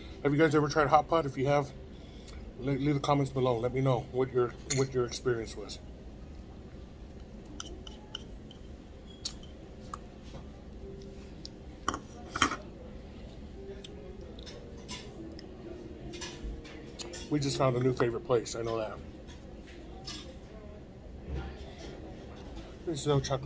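A spoon clicks against a bowl.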